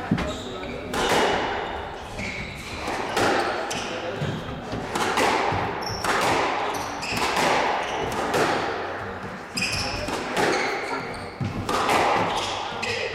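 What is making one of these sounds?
Rackets strike a squash ball with sharp thwacks.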